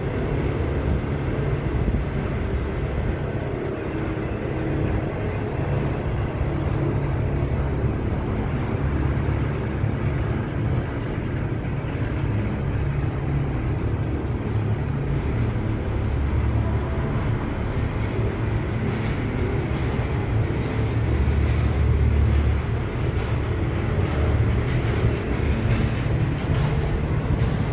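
Train wheels clatter and click over the rail joints.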